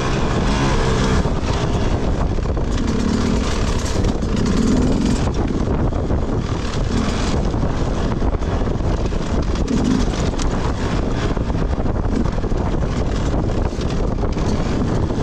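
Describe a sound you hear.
A dirt bike engine revs and sputters up close.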